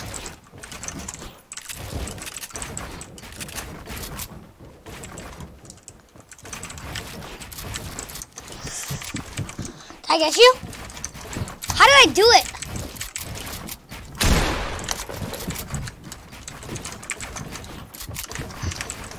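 Quick knocks and clatters of building pieces snapping into place sound throughout.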